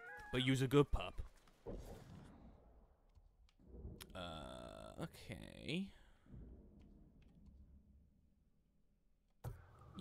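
Soft interface clicks and chimes sound as a menu changes.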